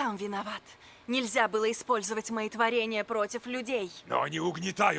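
A woman speaks reproachfully, heard close.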